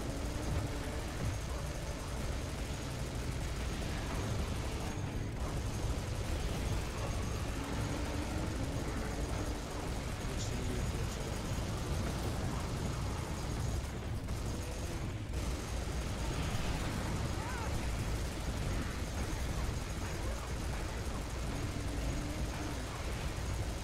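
A minigun fires in rapid, continuous bursts.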